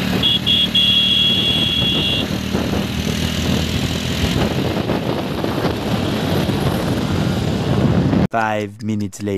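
A motorcycle engine runs and roars.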